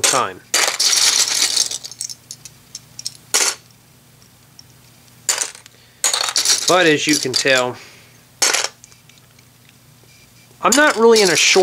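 Small plastic bricks clatter and rattle as a hand sorts through them.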